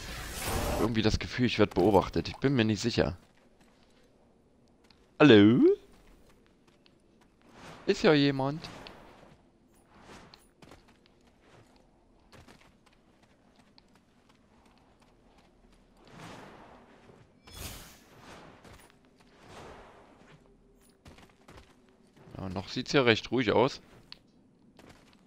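Footsteps patter quickly over stone and rock.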